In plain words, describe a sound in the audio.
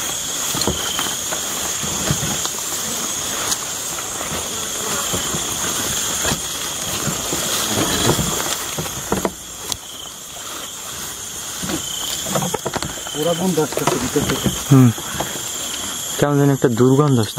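Leaves and stalks rustle and crackle close by.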